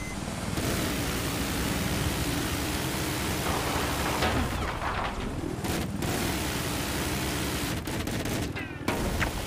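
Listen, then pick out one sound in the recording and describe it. A jet engine roars steadily in a game.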